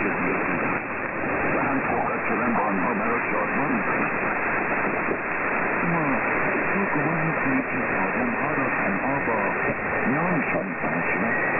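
Radio static hisses and crackles steadily, heard through a receiver.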